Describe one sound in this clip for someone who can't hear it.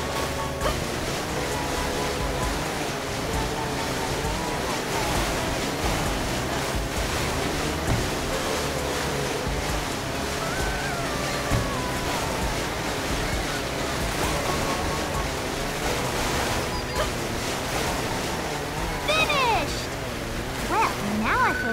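Water splashes and sprays under a jet ski.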